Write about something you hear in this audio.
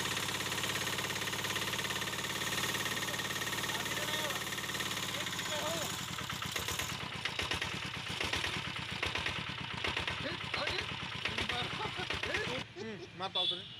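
A small engine runs loudly with a steady rattling hum.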